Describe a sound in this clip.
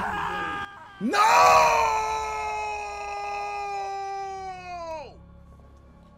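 A man yells loudly into a microphone, his voice sliding down.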